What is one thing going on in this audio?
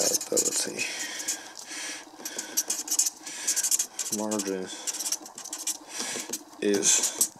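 A felt-tip marker squeaks and scratches across paper in short strokes.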